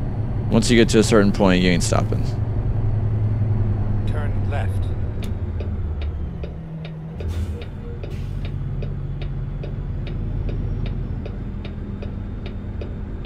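A truck engine drones low and steady.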